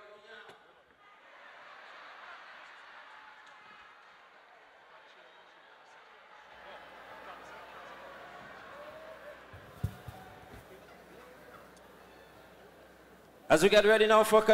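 A large audience laughs and murmurs.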